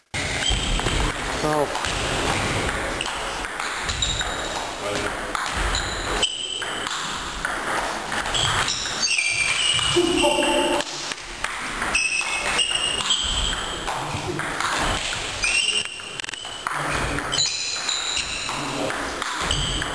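A table tennis ball clicks back and forth across a table and off paddles in an echoing hall.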